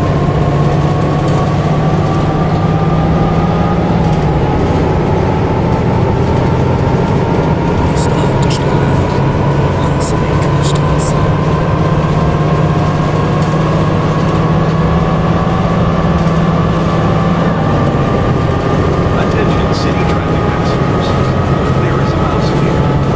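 A diesel city bus engine drones while cruising.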